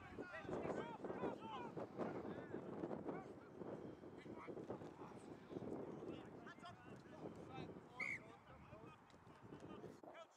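Young men shout to one another outdoors across an open field.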